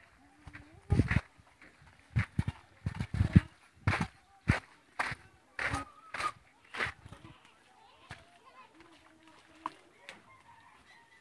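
A child's feet splash through shallow water.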